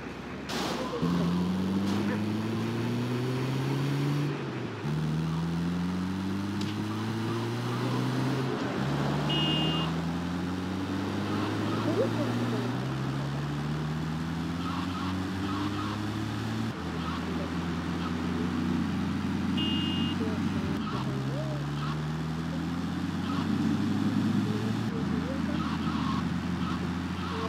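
A game's armoured van engine revs up through the gears, rising in pitch and dropping at each shift.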